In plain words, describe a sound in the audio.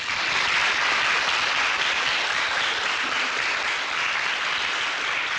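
A large audience applauds loudly in a hall.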